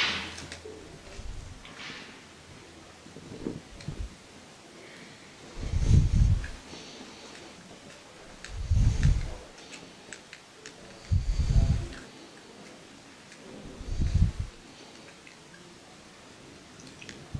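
A small screwdriver scrapes and clicks against metal pump parts.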